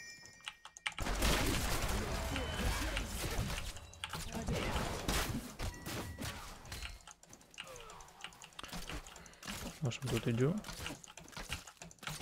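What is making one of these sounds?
Game battle sounds clash and crackle.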